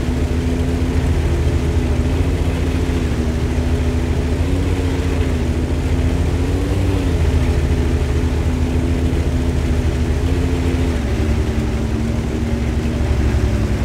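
A tank engine rumbles steadily, its pitch rising and falling slightly.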